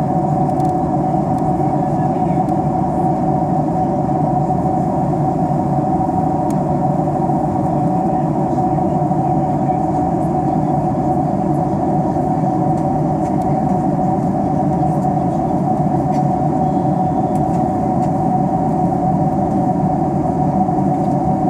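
Jet engines roar in a steady, low drone inside an airliner cabin.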